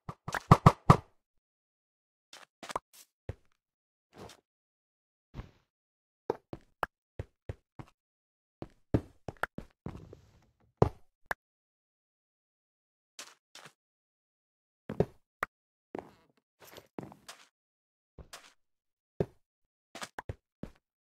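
A block breaks with a short crunch, several times.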